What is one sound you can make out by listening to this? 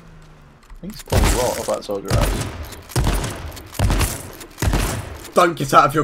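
Gunshots fire in quick succession.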